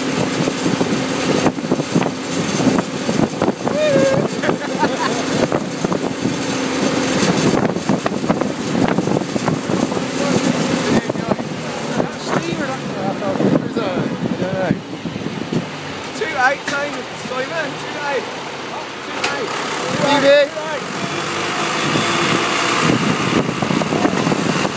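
A tractor engine chugs steadily nearby.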